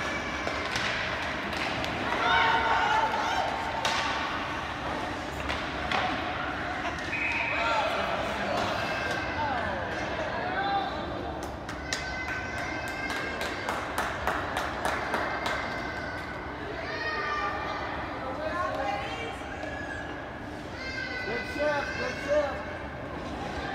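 Spectators nearby talk and call out.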